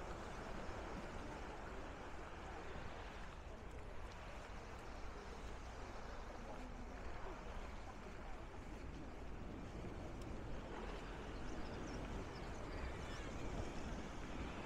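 Small waves wash gently onto the shore.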